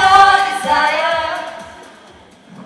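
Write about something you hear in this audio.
Young women sing together in a large hall.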